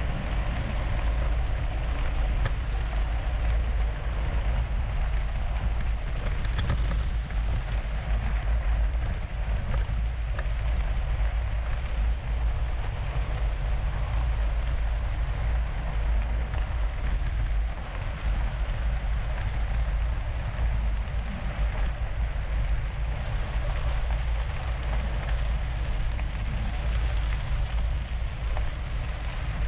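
Wind rumbles loudly across the microphone.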